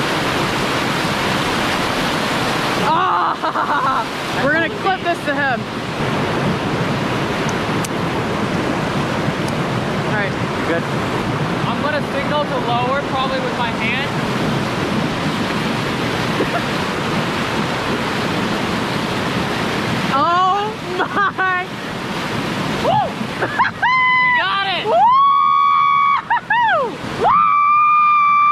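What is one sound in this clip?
Whitewater rushes loudly over rocks close by.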